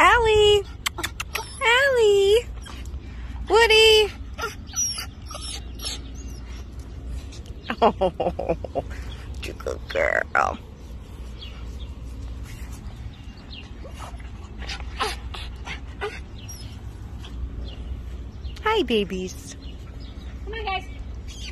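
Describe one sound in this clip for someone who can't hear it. A small dog barks in short, high yaps nearby.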